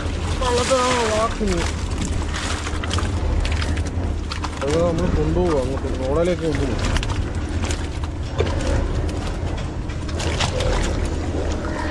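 Wet fish flap and slap against the bottom of a boat.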